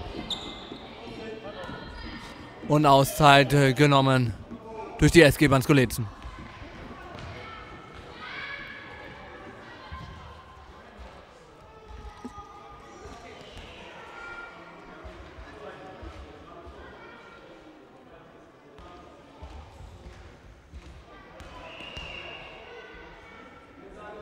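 Children chatter and call out in an echoing hall.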